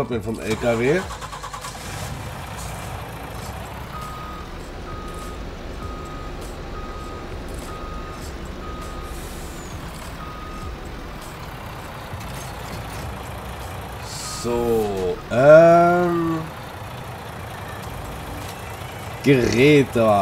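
A truck engine rumbles steadily.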